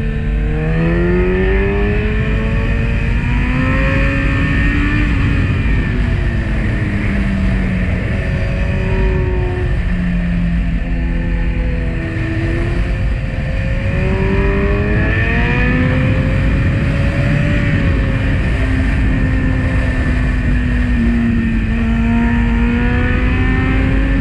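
A motorcycle engine hums, rising and falling in pitch.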